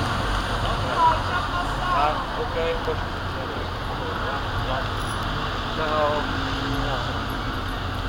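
People in a crowd call out and chatter nearby.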